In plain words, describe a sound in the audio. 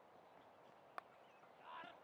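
A cricket bat strikes a ball with a sharp crack, heard from a distance outdoors.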